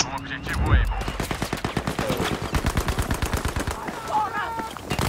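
A rapid burst of gunfire rattles close by.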